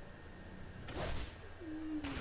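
A game character lands with a thud.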